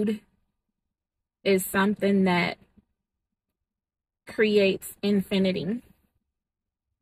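A woman speaks calmly and close to a microphone, in short phrases.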